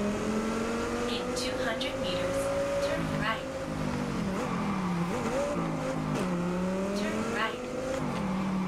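Tyres squeal on wet pavement.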